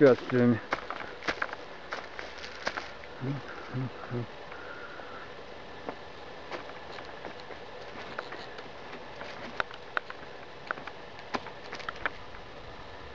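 Footsteps and hands knock and scrape on a wooden ladder.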